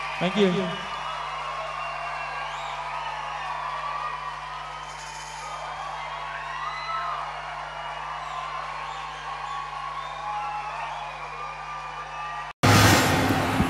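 People in a crowd whistle shrilly.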